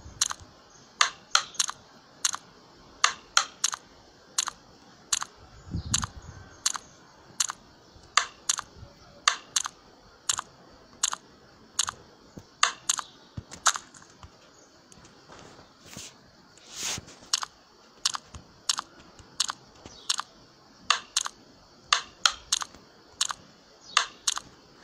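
A ball in a mobile game bounces with quick, sharp clicks.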